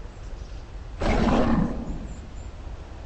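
Large wings flap once with a loud whoosh.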